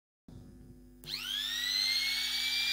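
An electric router motor starts and whirs up to a high speed.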